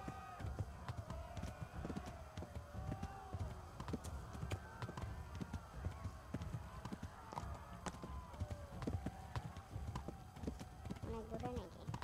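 A horse's hooves trot on a dirt path.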